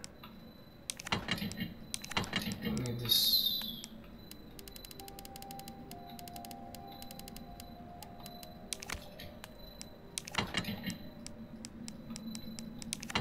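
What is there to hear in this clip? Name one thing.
Short menu clicks tick quickly as items are scrolled through.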